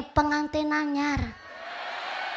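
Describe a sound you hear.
A young woman sings loudly through a microphone.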